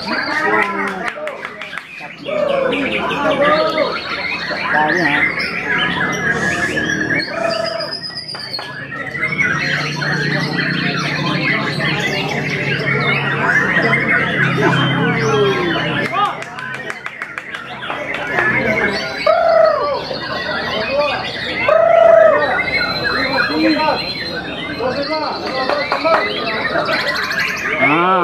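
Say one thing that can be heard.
A songbird sings loud, varied whistling phrases close by.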